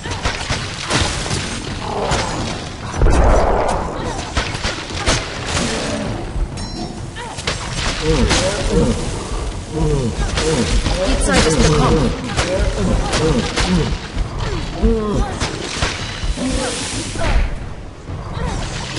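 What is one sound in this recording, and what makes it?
Blows and sharp impacts clash repeatedly in a fight.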